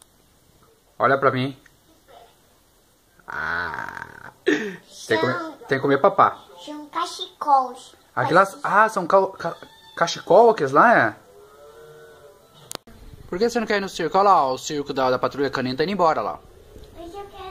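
A young child talks with animation close by.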